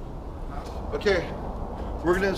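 An elderly man speaks loudly close by.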